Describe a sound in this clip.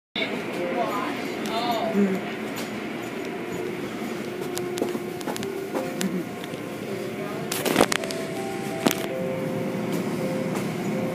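Car wash machinery hums and whirs steadily.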